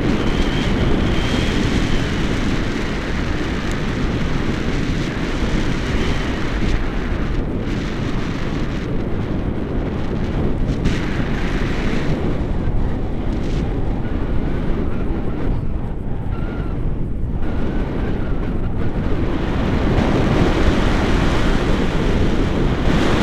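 Strong wind roars loudly and steadily past a microphone outdoors.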